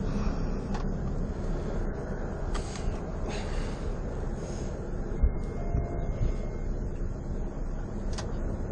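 A car engine hums steadily with low road rumble from inside the car.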